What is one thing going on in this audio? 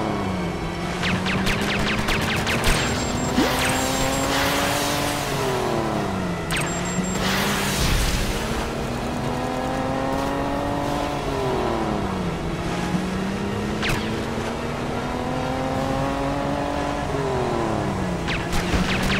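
Torpedoes blast and explode with sharp bangs.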